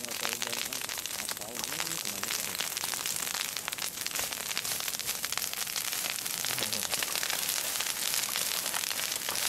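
A fire crackles and roars loudly.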